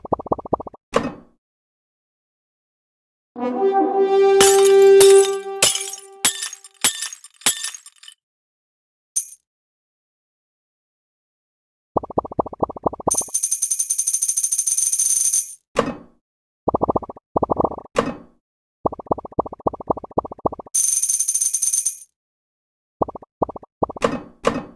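Game sound effects pop rapidly as balls are collected.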